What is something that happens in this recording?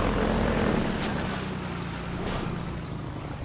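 Water splashes under tyres.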